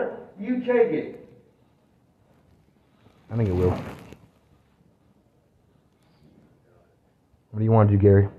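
A man speaks loudly and firmly close by, in short bursts.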